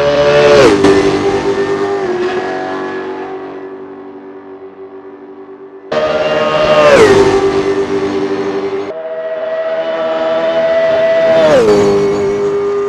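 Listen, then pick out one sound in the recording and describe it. A race car engine shifts gear with a sharp drop in pitch.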